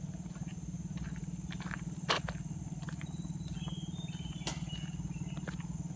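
Footsteps crunch on a gravel road.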